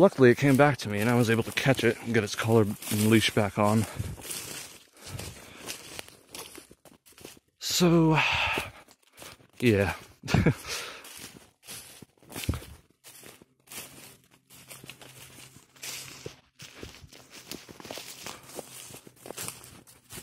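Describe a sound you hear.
Footsteps crunch and rustle through dry fallen leaves.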